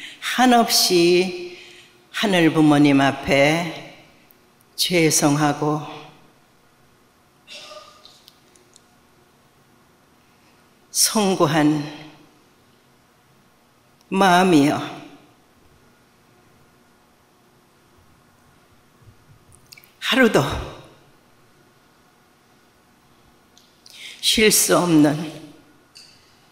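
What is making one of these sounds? An elderly woman speaks slowly and solemnly into a microphone, with long pauses.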